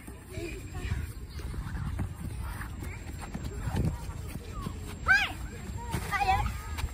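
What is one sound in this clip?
Children's feet run across grass.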